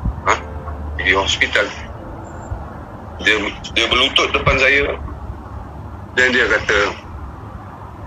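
A man speaks in short, emphatic bursts.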